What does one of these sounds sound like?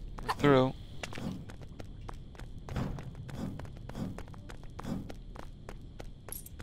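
Small footsteps tap quickly on a hard floor.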